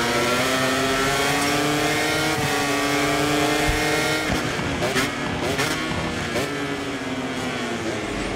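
A motorcycle engine screams at high revs, rising in pitch and then dropping as the rider shifts down.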